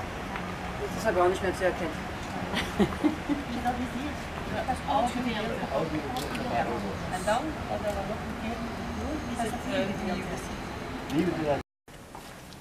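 Several adults talk nearby.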